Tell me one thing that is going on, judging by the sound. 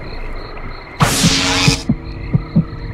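A sharp electronic whoosh bursts out, then cuts off.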